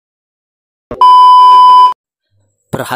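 A steady high test tone beeps loudly for about a second.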